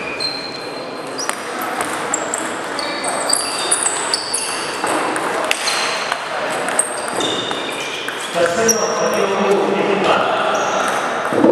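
A ping-pong ball clicks back and forth off paddles and a table in an echoing hall.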